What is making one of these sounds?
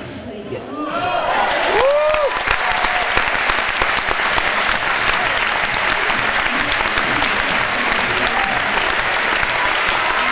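A large crowd claps and cheers loudly in a big echoing hall.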